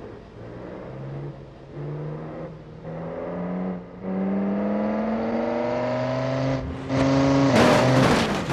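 A large truck engine revs up, climbing through the gears.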